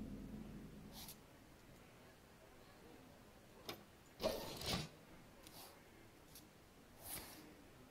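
Game cards make short whooshing clicks.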